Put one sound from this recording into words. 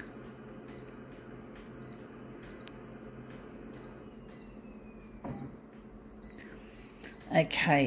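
A touch panel gives short, soft beeps with each tap.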